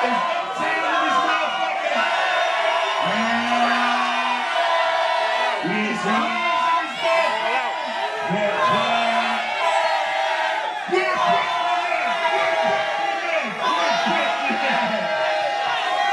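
A man raps loudly into a microphone over a loudspeaker.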